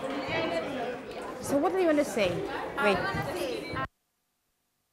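Teenagers talk with animation close by.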